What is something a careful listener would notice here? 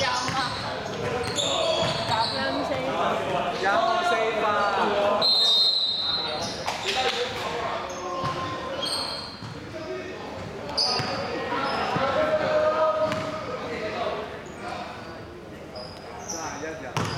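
Young men shout and call out to each other across the hall.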